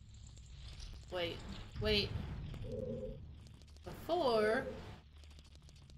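A young woman speaks casually into a nearby microphone.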